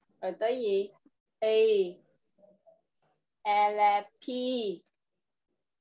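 A young child speaks slowly and clearly over an online call, in short bursts with pauses.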